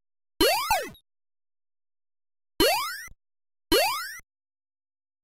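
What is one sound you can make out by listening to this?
A video game character jumps with short rising electronic sweeps.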